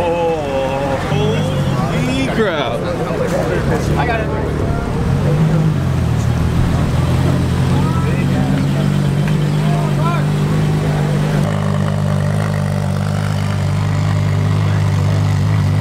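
A sports car engine idles with a deep, steady rumble and revs briefly.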